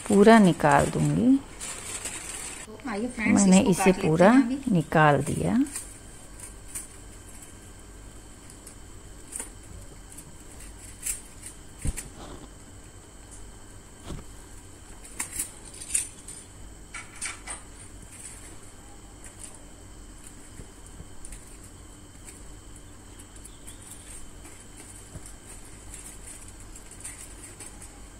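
Aluminium foil crinkles.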